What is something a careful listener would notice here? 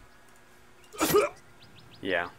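A weapon strikes with a sharp, short hit.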